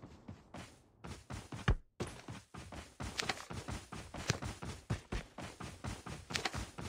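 Footsteps thud quickly and steadily over dry grass.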